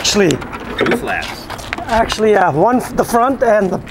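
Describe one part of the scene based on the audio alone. A metal latch clanks open on a trailer door.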